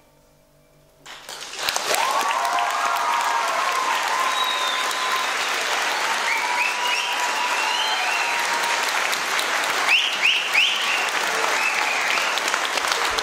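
An audience claps loudly in an echoing hall.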